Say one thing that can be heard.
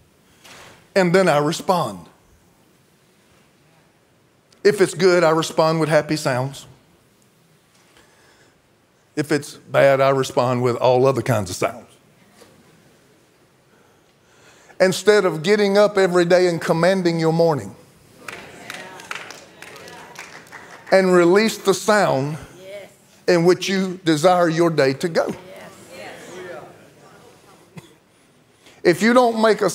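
A middle-aged man speaks with animation through a microphone, in bursts with pauses, in a large room.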